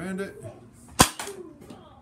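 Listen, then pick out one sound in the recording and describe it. A toy blaster fires with a sharp snap.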